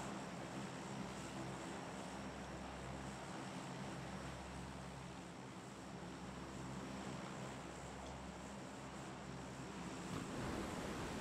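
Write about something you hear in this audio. A plane's engines drone steadily.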